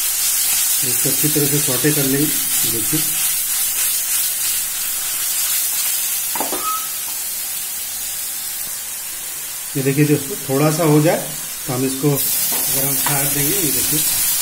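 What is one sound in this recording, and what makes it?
Food sizzles and hisses in a hot pan.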